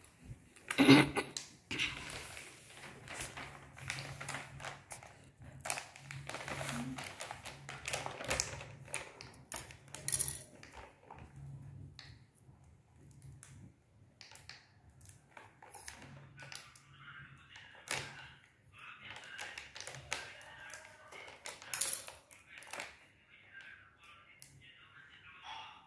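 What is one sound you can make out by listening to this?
A plastic wrapper crinkles and rustles as it is handled.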